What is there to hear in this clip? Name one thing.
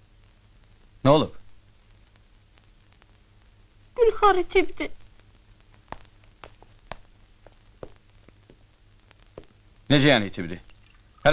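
A man speaks in short, tense bursts.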